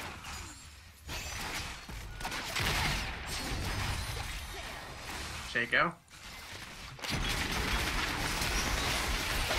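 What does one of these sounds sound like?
Spell blasts and weapon clashes crackle in a busy fight.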